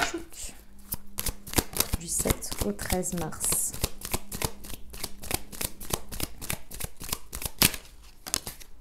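Playing cards are shuffled quickly, riffling and flicking.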